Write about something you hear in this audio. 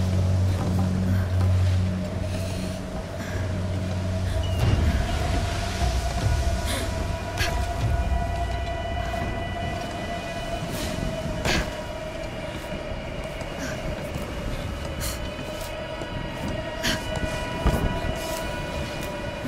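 Rough waves wash and churn nearby.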